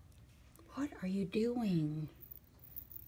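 A kitten mews loudly.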